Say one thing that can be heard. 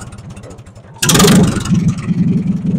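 An old tractor engine suddenly revs up loudly.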